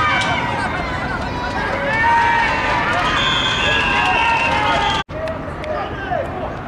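A crowd of men shouts and cheers excitedly outdoors.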